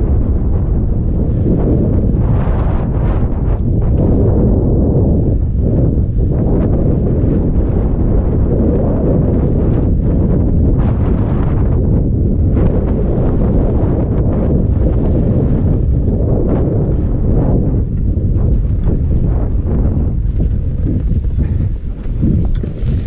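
Wind roars steadily against a moving microphone outdoors.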